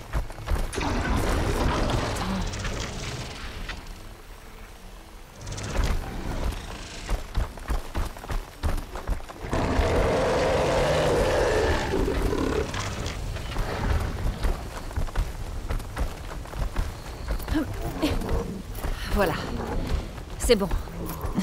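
Hands and feet scrape and grip on rock during a climb.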